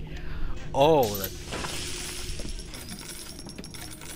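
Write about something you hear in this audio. A short chime sounds as items are picked up.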